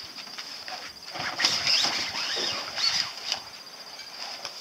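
A fabric boat cover rustles as it is pulled off.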